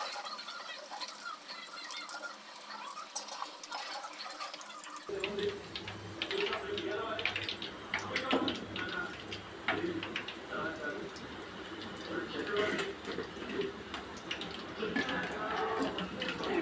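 A metal slotted spoon scrapes and clinks against a steel wok.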